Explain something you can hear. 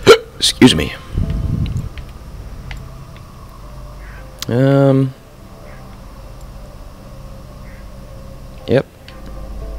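Short electronic menu sounds chime and whoosh now and then.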